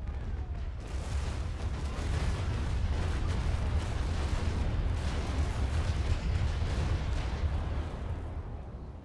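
Cannons boom in heavy, rolling volleys.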